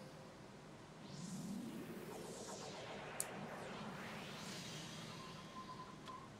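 A swirling magical whoosh swells and fades away.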